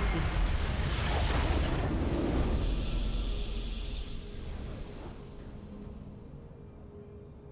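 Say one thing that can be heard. A triumphant victory fanfare swells and slowly fades.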